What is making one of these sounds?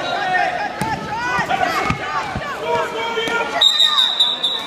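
Spectators shout and cheer in an echoing gym.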